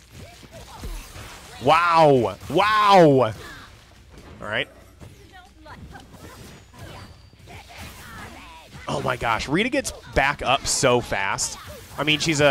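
A magic energy blast crackles and whooshes.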